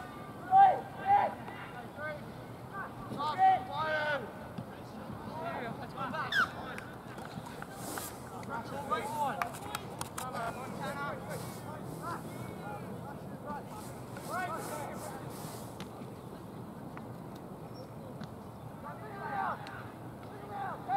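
Young female players shout and call out across an open field.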